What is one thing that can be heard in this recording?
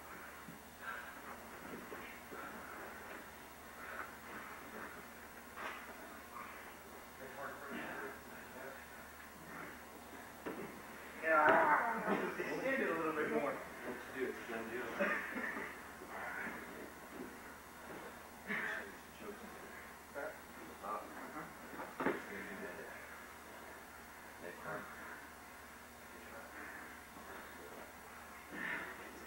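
Two people grapple and thump on a padded mat.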